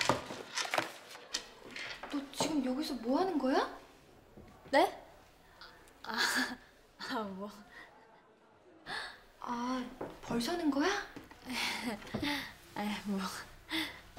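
A young woman answers brightly and cheerfully close by.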